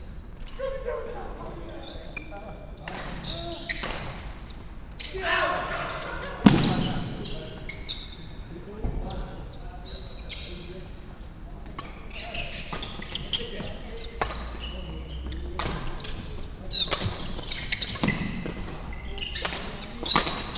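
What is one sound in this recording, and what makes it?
Shuttlecocks are struck with sharp pops of badminton rackets in a large echoing hall.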